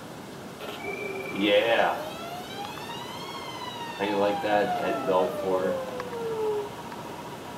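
Electronic organ tones glide up and down through a television speaker.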